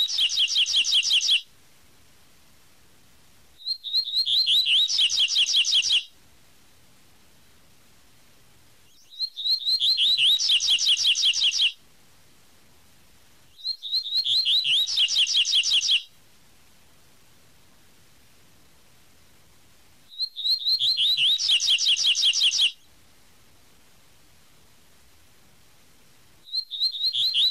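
A small songbird sings bursts of quick, bright, repeated chirping notes, with short silent pauses between them.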